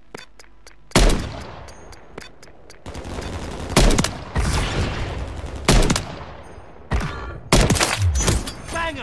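Loud rifle shots boom, one at a time.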